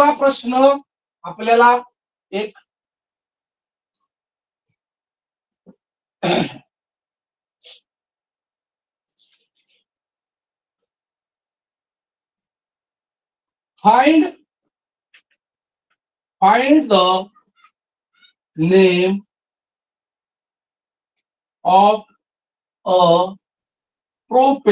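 A man speaks in short, clear phrases close by, as if explaining.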